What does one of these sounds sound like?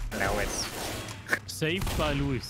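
Shotgun blasts boom sharply.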